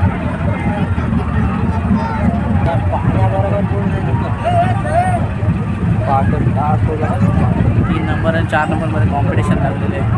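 A group of men and women call out from a nearby boat.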